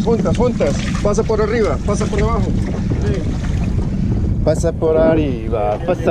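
A fishing reel clicks as the line is wound in.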